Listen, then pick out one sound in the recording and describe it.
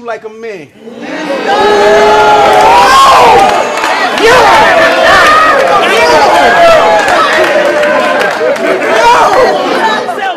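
A crowd cheers and shouts loudly in an excited roar.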